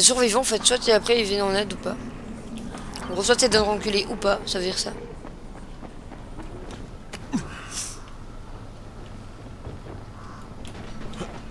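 Footsteps run on hard ground.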